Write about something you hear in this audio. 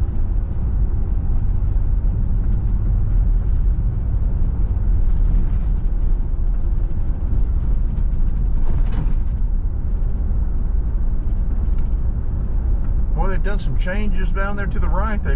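A car engine hums steadily as tyres roll along a paved road.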